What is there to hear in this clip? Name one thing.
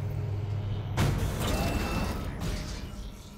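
A heavy metal door slides open with a loud hiss and rumble.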